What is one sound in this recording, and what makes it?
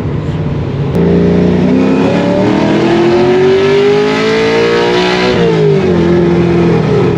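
A car engine revs up, climbing in pitch, then drops back.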